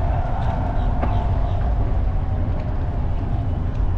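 Water splashes and laps gently against a paddleboard.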